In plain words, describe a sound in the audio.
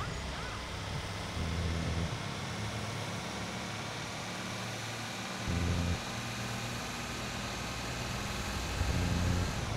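A car engine drones and revs.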